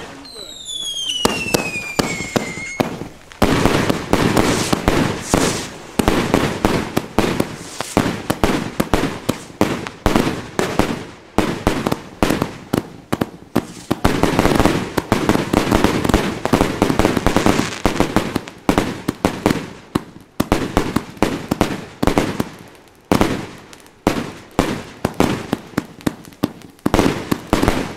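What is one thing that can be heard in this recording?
Fireworks bang and crackle loudly in rapid bursts overhead.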